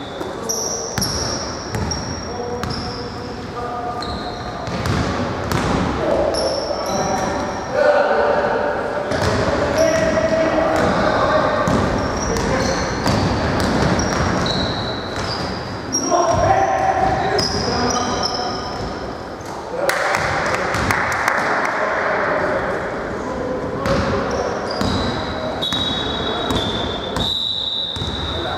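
Men shout across a large echoing hall.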